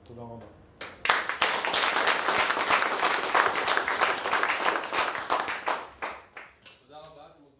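An audience claps loudly in a room.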